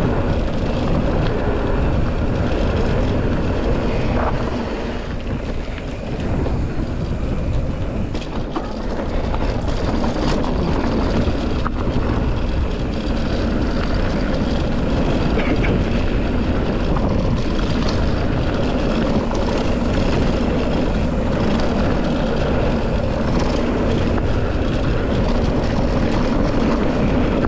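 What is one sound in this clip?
Wind buffets the microphone loudly and steadily.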